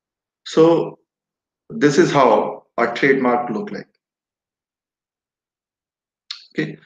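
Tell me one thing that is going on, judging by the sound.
A man speaks calmly through a microphone on an online call.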